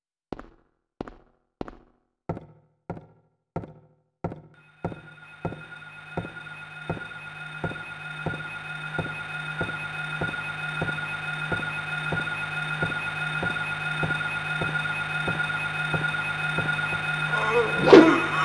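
Footsteps thud slowly and evenly on a hard floor.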